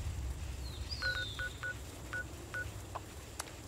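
Short electronic beeps sound from a game menu.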